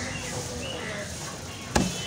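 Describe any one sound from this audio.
A cleaver chops down hard on a wooden block.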